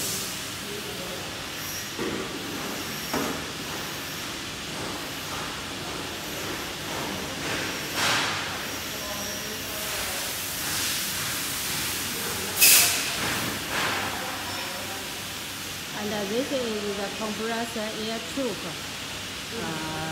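A packaging machine hums and whirs steadily.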